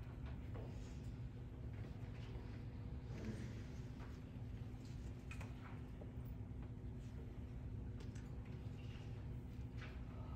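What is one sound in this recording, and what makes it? Small objects clink softly on a table.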